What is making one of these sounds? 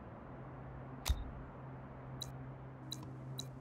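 Short, sharp game interface clicks sound now and then.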